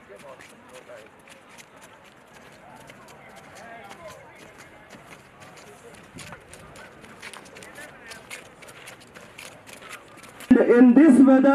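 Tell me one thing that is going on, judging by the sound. Footsteps march in a steady rhythm.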